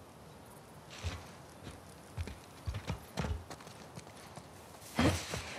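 Footsteps walk outdoors.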